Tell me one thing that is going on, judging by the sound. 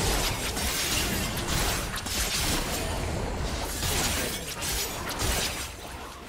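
Magic blasts and weapon strikes crackle and thud in a fast battle.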